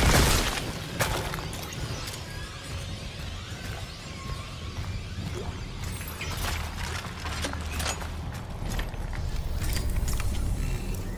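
Heavy boots clank on a metal walkway.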